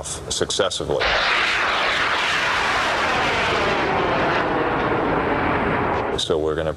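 A rocket roars loudly as it flies upward.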